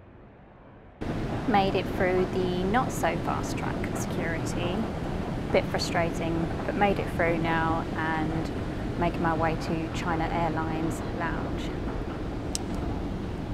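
A young woman talks close by, calmly and cheerfully.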